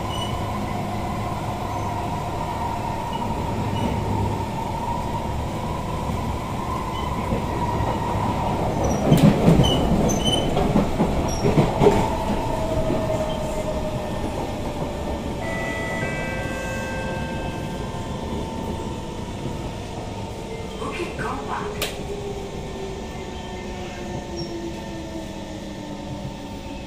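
Metro train wheels rumble over the track.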